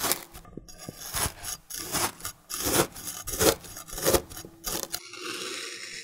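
A knife crunches through crumbly, dry cake.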